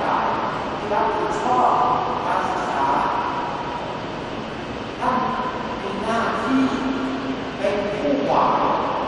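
A man chants slowly through loudspeakers in a large echoing hall.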